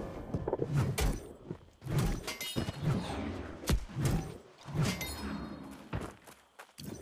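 Heavy weapon blows thud and clang in quick bursts.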